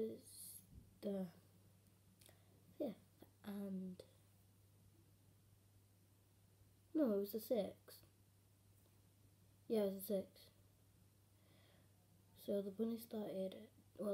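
A young girl talks calmly and close by, in short bursts with pauses.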